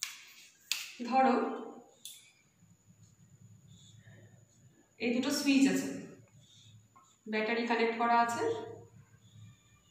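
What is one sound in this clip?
A woman speaks calmly nearby, explaining.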